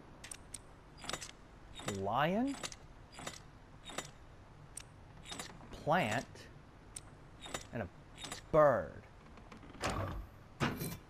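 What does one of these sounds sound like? Small metal dials click as they turn.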